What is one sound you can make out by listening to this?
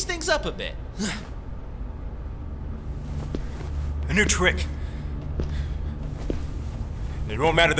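A man speaks in short, forceful bursts close by.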